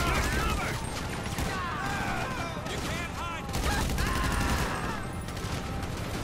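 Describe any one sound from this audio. Police sirens wail nearby.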